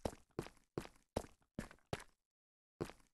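Footsteps tread quickly on stone.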